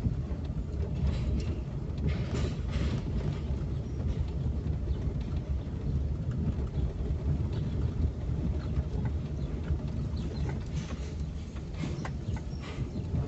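Tyres rumble over a cobbled road.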